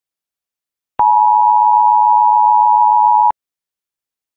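A steady high test tone sounds.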